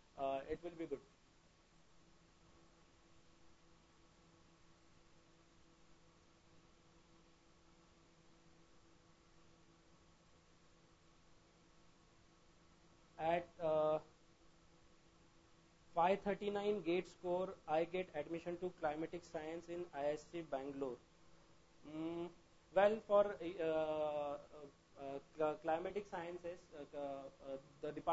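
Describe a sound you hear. A young man speaks calmly and close to a microphone, pausing now and then.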